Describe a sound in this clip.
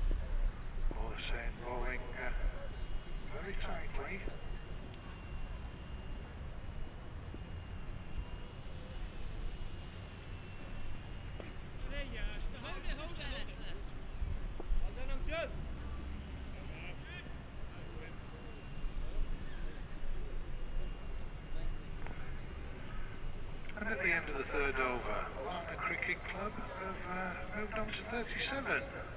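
Wind blusters across an open field.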